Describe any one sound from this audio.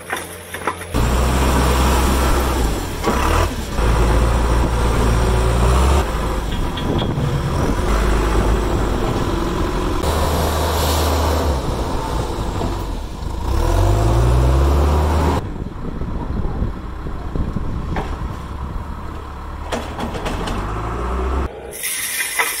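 A diesel engine rumbles loudly and revs up and down.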